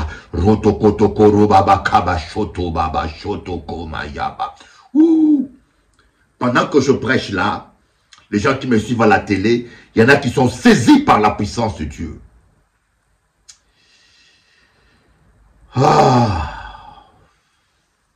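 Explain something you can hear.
A middle-aged man speaks with animation close to a microphone, pausing now and then.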